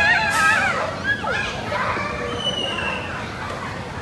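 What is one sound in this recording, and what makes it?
A young child shouts and squeals nearby.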